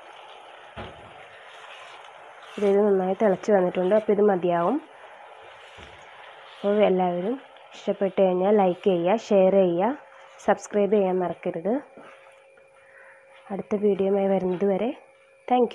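A wooden spatula stirs a thick sauce in a pot.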